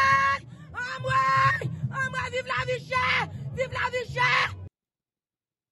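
A woman shouts loudly and hoarsely.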